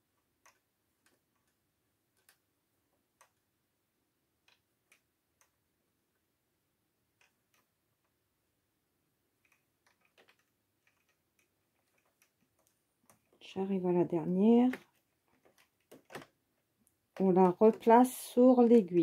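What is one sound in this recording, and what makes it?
A latch hook clicks softly against the needles of a knitting machine.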